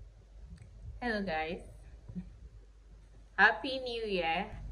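A young woman speaks warmly and cheerfully close by.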